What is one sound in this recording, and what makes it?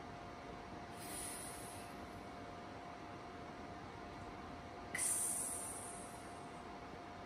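A young woman makes short hissing and breathy sounds.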